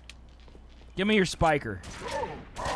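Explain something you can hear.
A weapon fires in short bursts.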